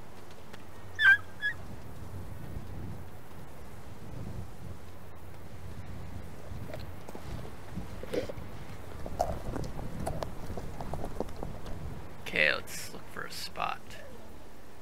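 Wolf pups yelp and whine in short, high cries.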